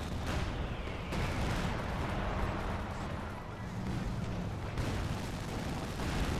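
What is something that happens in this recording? Gunfire and explosions crack and boom.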